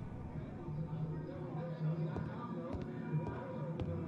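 Footsteps walk along a wooden floor.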